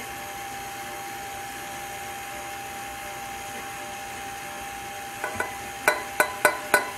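An electric stand mixer hums steadily as it whisks.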